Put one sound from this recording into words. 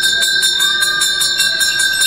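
A woman claps her hands in prayer.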